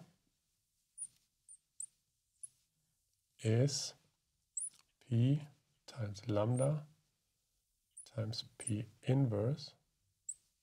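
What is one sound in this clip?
A marker squeaks briefly on glass.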